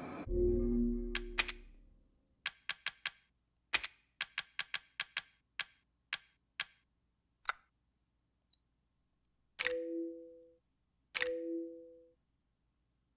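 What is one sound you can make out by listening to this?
Short electronic menu clicks tick one after another.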